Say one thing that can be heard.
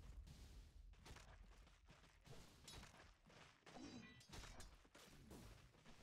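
Fantasy game sound effects clash and swish during a fight.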